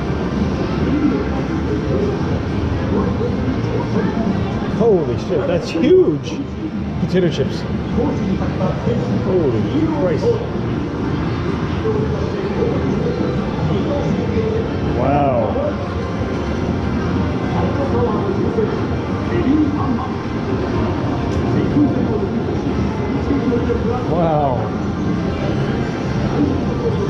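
Arcade machines play cheerful electronic jingles nearby.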